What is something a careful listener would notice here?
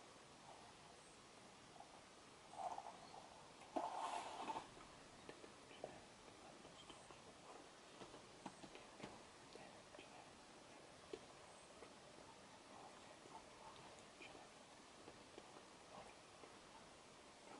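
A middle-aged man speaks quietly and calmly close to a microphone.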